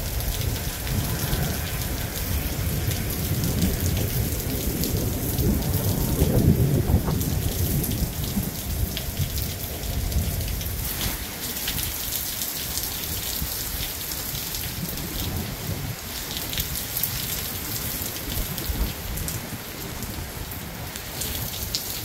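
Strong wind gusts and rumbles.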